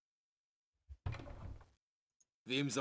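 A wooden chest creaks open.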